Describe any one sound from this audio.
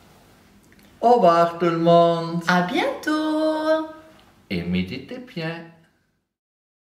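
A woman calls out a drawn-out, cheerful farewell close by.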